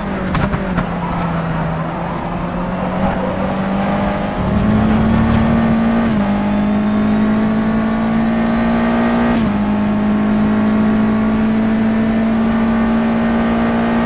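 A racing car engine roars loudly, its pitch climbing and dropping sharply with each gear shift.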